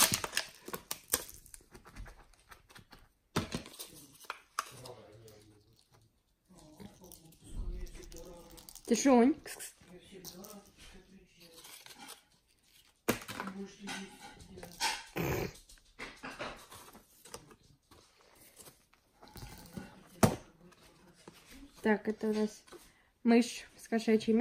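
Paper and plastic packaging rustle and crinkle close by.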